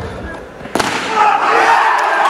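Men shout and cheer.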